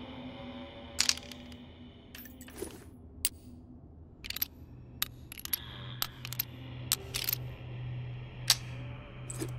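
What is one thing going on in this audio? Metal clicks and rattles as rounds are loaded into a revolver's cylinder.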